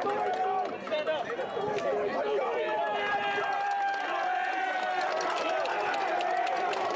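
A crowd of spectators cheers and calls out outdoors.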